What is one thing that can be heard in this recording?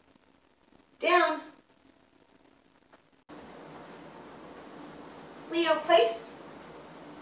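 A young woman speaks short commands nearby.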